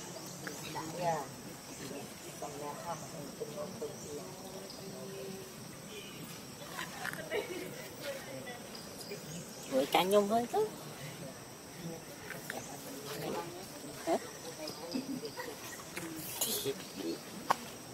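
A baby monkey squeaks softly now and then.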